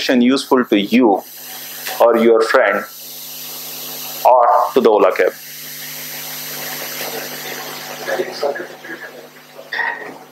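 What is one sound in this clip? A man speaks calmly in short bursts, close by in a room with some echo.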